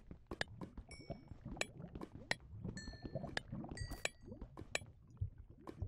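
A pickaxe taps and chips at stone in quick strokes.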